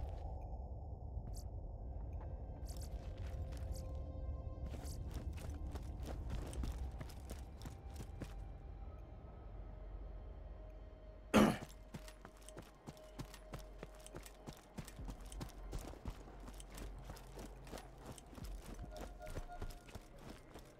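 Footsteps crunch steadily over hard ground.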